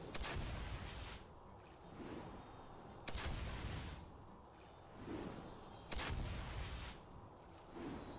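Magical spell effects whoosh and sparkle in repeated bursts.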